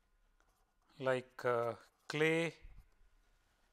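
An elderly man speaks briefly and calmly close to a microphone.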